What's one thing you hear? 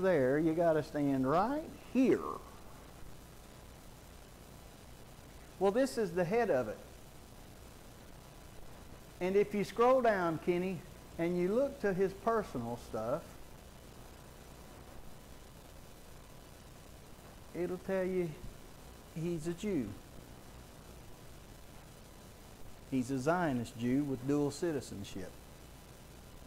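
A middle-aged man speaks calmly through a microphone, pausing often.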